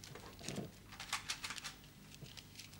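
Paper crinkles close by.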